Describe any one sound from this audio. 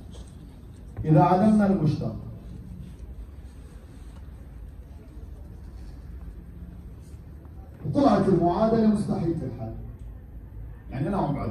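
A man speaks through a microphone over loudspeakers in an echoing room.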